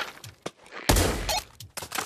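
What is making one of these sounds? A magazine clicks into a rifle.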